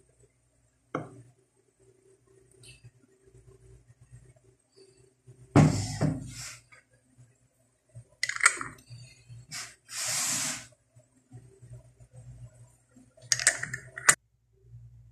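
Glass jars clink against each other.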